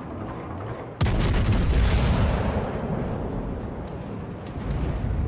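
Heavy naval guns fire with a deep, booming roar.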